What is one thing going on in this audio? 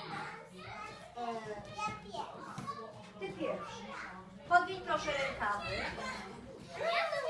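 A woman speaks with animation to small children nearby.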